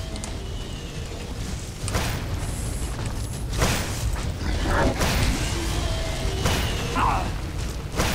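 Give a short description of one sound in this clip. Flames roar and whoosh in bursts.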